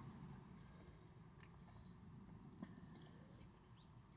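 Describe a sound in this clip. A man gulps a drink from a can.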